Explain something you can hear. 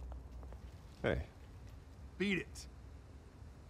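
A man says a short word of greeting in a calm voice, close by.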